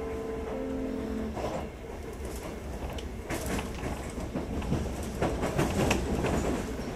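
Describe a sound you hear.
An electric train hums steadily while standing at a platform.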